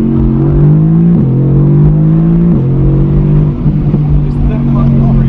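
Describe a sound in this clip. A car engine hums steadily and climbs in pitch, dropping briefly at each gear change.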